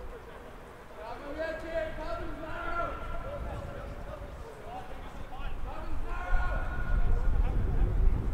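Rugby players call out to each other from across a field.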